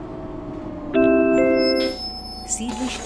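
A bus door chime beeps.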